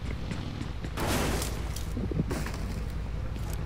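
Gunshots crack nearby, several times.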